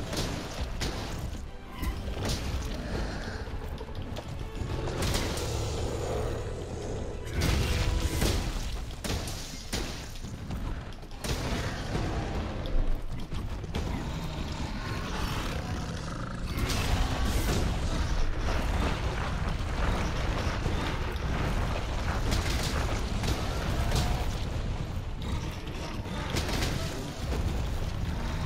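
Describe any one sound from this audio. A blade strikes hard against rock-like armour with sharp clashes.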